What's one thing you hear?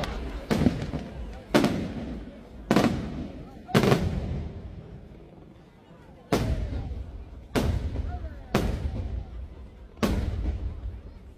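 Fireworks crackle and sizzle after each burst.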